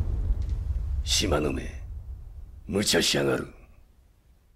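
A middle-aged man speaks angrily through gritted teeth, close by.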